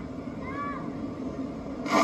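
A young man talks with animation, heard through a television speaker.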